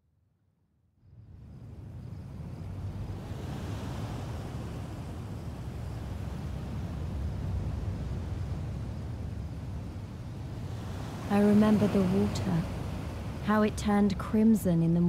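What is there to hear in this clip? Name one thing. Gentle waves wash softly onto a shore.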